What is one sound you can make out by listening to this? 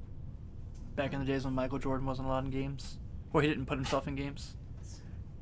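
A man speaks close into a microphone in short bursts.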